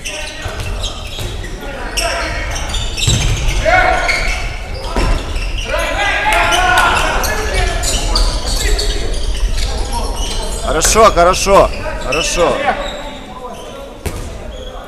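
Spectators murmur and call out in a large echoing hall.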